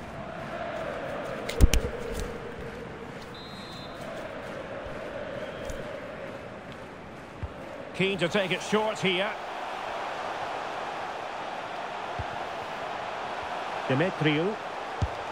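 A stadium crowd cheers and chants steadily.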